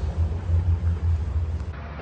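Footsteps walk down stairs.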